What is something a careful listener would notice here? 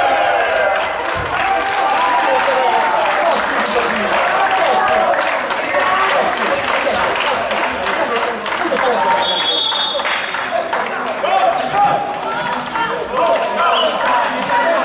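A crowd of young men cheers and shouts excitedly in a large echoing hall.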